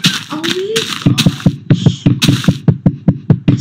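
Rapid knocking thuds repeat as a game character punches a tree.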